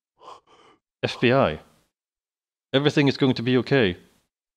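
A young woman speaks softly and reassuringly, close by.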